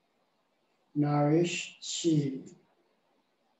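A man's voice calls out loudly in a quiet room.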